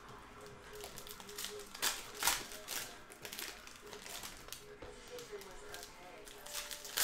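Plastic card wrappers crinkle and rustle between fingers.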